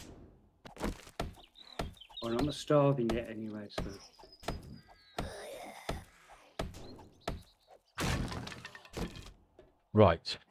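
A club strikes a wooden crate with dull, repeated knocks.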